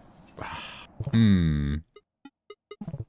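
A bright chime sounds as a game menu opens.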